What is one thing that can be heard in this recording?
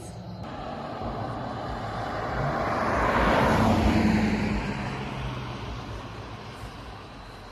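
A car approaches and drives past close by, swelling and then fading.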